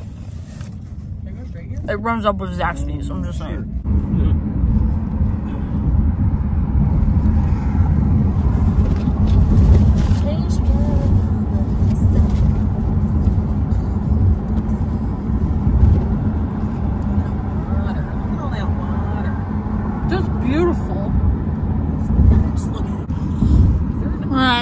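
A car engine hums steadily with road rumble from inside the car.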